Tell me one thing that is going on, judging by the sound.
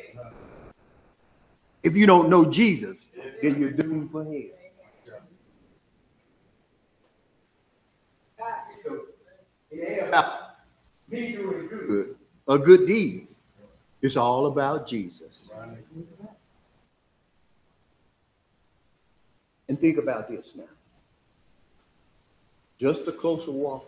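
A man speaks with animation through a microphone, pausing often.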